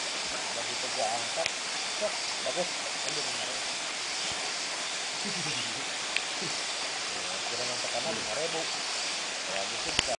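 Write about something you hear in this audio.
Young men talk casually a short way off.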